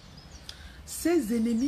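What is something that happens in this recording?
A woman begins to speak close by.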